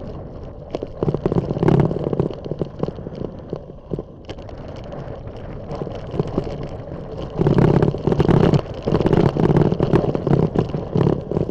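Wind buffets loudly in gusts outdoors.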